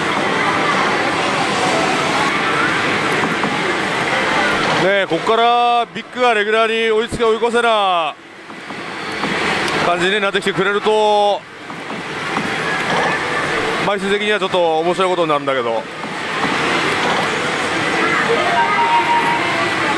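A slot machine plays loud electronic tunes and effects.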